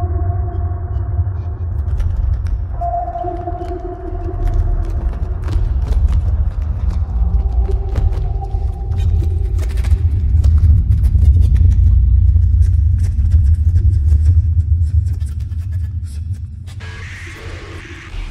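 An electric guitar plays slow, droning notes.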